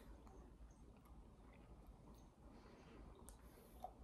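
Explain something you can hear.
A young man gulps a drink from a bottle.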